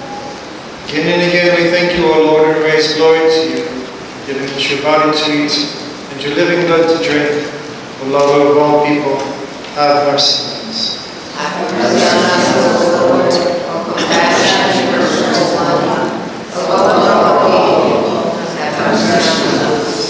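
A man chants in a deep voice in a large echoing hall.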